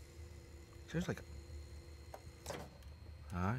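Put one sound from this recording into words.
A plastic connector clicks as a hose is pulled free.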